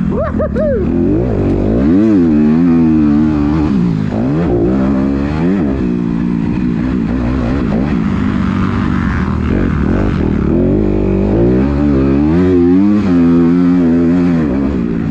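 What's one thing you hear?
A dirt bike engine roars close by, revving up and down as it accelerates and shifts gears.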